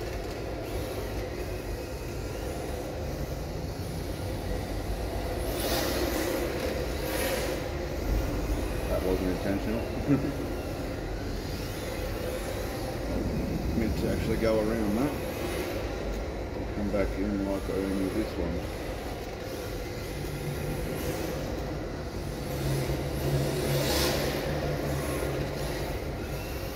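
A small electric motor whines and revs as a toy car races around a large echoing hall.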